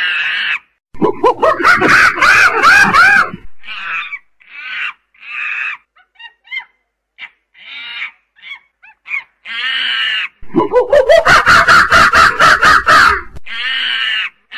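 A chimpanzee screams loudly and shrilly.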